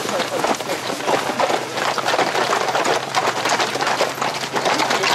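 Horses gallop on a dirt track, hooves pounding.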